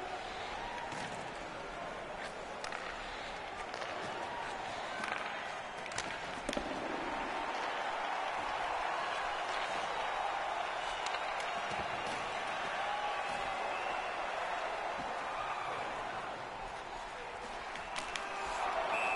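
Hockey sticks sharply clack against a puck.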